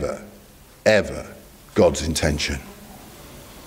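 A middle-aged man speaks calmly into a microphone, in short bursts.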